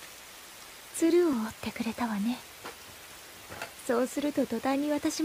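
A young child speaks softly and sadly, close by.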